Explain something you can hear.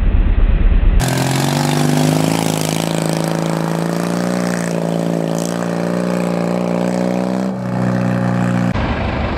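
An off-road buggy's engine roars steadily as it speeds away.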